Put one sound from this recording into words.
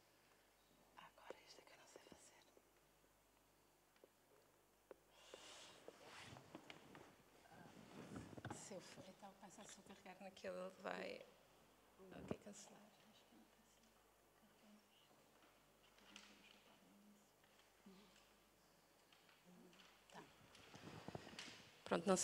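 A woman speaks calmly into a microphone in a quiet hall, heard from the back of the audience.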